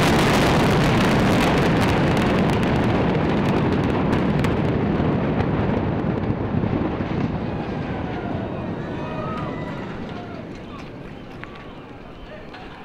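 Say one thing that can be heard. A large building collapses with a deep, thundering roar that slowly fades.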